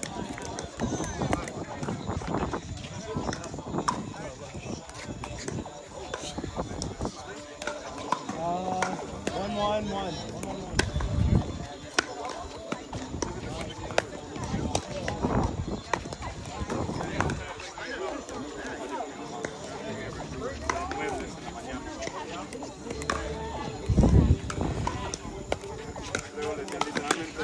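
Paddles pop against a plastic ball in a quick rally outdoors.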